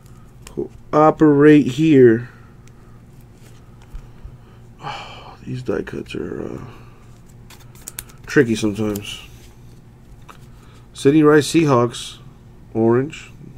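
Trading cards slide and rustle against each other as they are handled.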